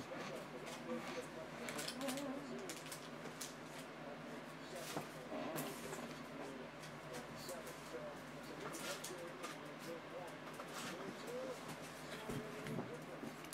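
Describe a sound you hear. A cardboard box rustles and scrapes as hands handle it.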